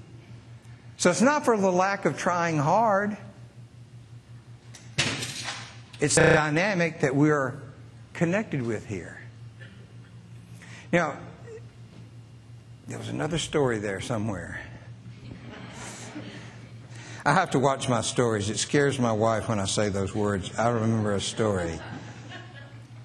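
A middle-aged man speaks with animation to an audience in a room with a slight echo.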